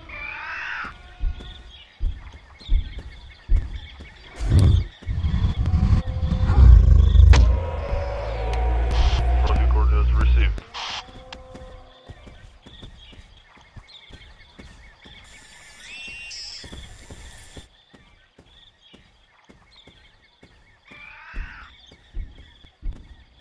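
Footsteps thud steadily through grass.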